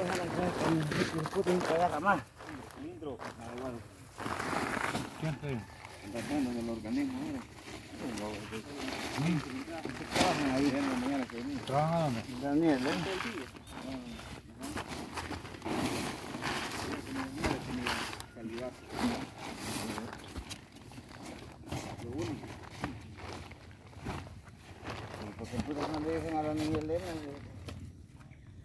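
Elderly men talk casually nearby, outdoors.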